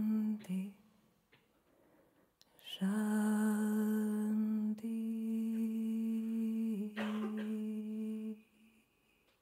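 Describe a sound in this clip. A woman sings long, held notes into a microphone.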